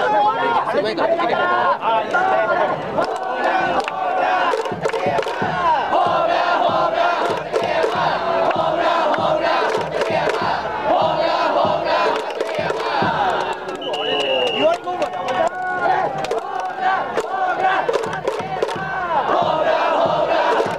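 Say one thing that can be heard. A large crowd sings and chants together in an open stadium.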